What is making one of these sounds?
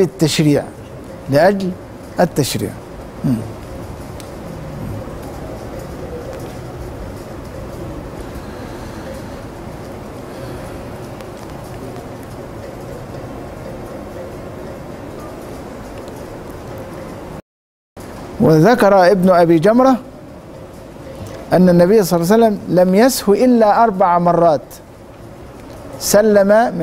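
A middle-aged man reads aloud and speaks calmly into a close microphone.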